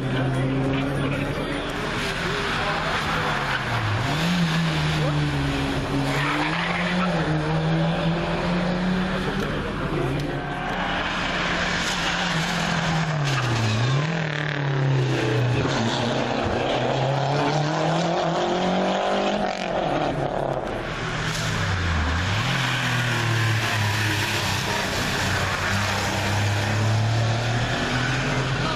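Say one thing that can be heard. A rally car engine revs hard, dropping in pitch at each gear change as it races by.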